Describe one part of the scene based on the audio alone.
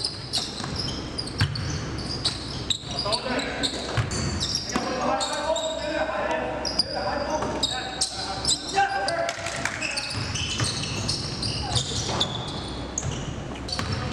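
Sneakers squeak on a hardwood court in an echoing gym.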